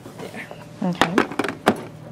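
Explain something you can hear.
A plastic tray clacks as it is handled.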